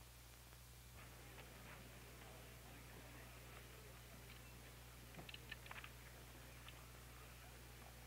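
A man speaks far off through a public address loudspeaker outdoors.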